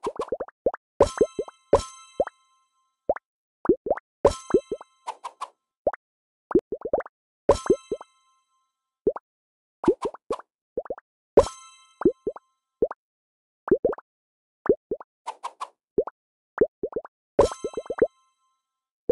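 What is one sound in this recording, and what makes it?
A bright chime rings out when a combo is made.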